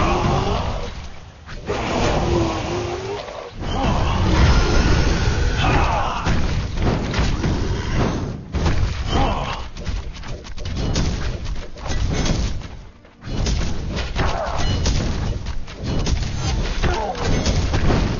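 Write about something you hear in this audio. Swords clash and magic blasts burst in a fast battle.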